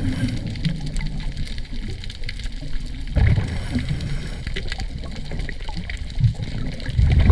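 Bubbles gurgle and rumble from a diver's breathing underwater.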